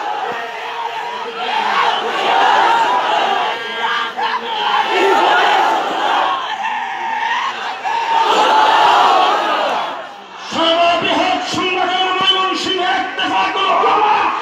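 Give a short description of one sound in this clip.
A large crowd of men chants loudly together outdoors.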